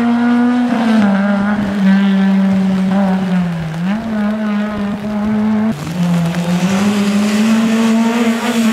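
A rally car engine roars loudly, shifting gears as it speeds past.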